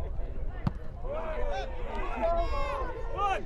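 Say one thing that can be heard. A small crowd cheers outdoors.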